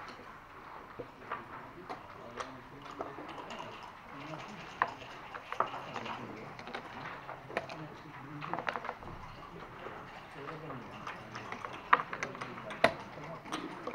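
Backgammon checkers click as they are moved on a board.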